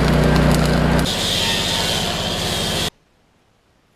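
An angle grinder whines loudly against steel.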